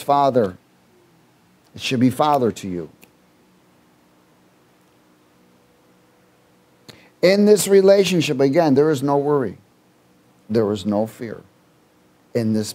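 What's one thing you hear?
A middle-aged man speaks with animation through a headset microphone, pausing between phrases.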